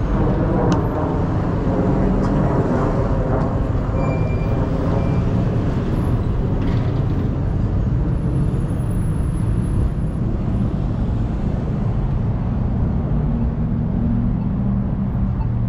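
Traffic rumbles past on a nearby road.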